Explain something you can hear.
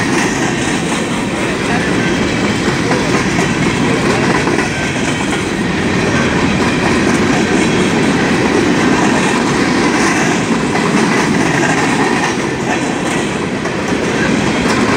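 A loaded coal train's hopper cars rumble past close by.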